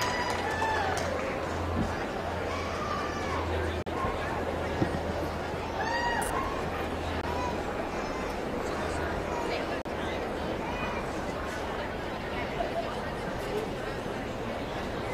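A crowd murmurs steadily in a large echoing hall.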